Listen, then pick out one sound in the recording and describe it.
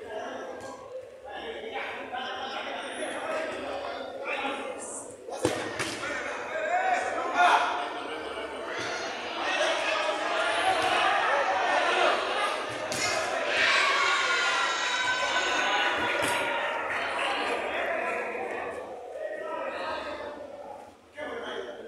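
Men shout and call out to each other across an open pitch.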